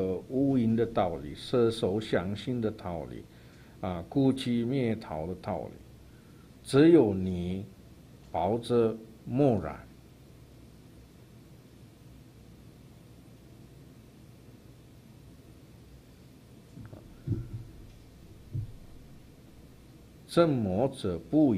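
An elderly man speaks calmly through a microphone, with long pauses.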